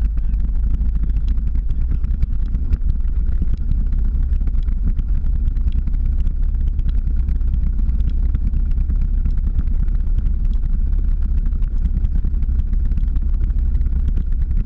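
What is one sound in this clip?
Wheels roll and rumble steadily over rough pavement.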